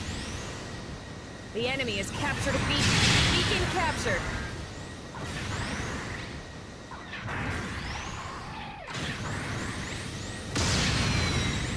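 Beam rifle shots fire with sharp zaps.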